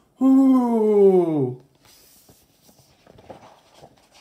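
A paper page rustles as it turns.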